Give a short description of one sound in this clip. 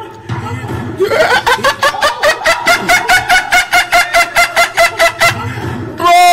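A young man laughs loudly and rhythmically close to a microphone.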